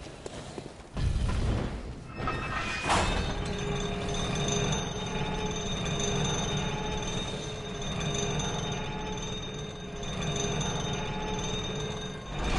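A metal cage lift rumbles and clanks as it moves.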